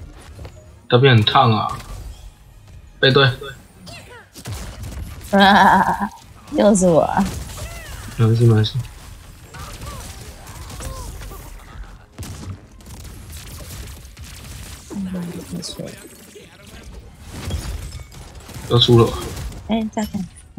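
Magic blasts burst and crackle in a fast battle.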